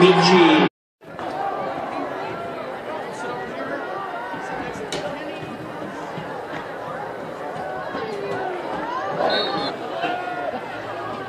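Spectators chatter and call out from the stands.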